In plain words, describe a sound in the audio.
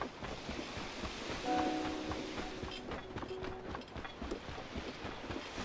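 Footsteps patter steadily on grass.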